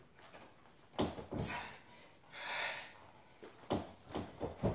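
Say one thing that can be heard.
Feet thump on a wooden floor.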